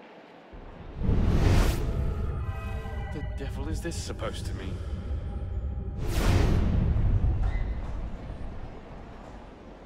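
A magical shimmering whoosh swells and rings out, then fades.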